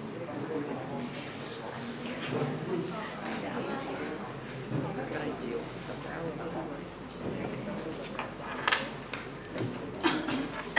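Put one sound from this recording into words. A young man speaks steadily through a microphone and loudspeakers in an echoing hall.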